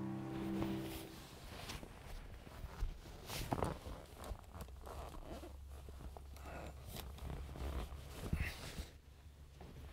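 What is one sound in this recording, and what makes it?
A man rummages under a vinyl car bench seat, with rustles and knocks.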